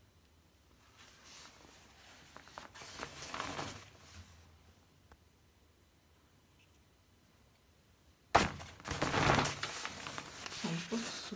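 Fabric rustles and brushes close to the microphone.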